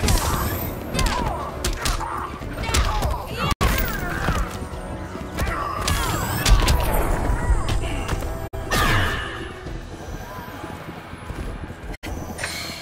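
Punches and kicks land with heavy, rapid thuds and whooshes.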